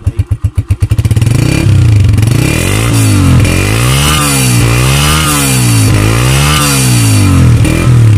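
A motorcycle engine revs up and down over and over, loud and close.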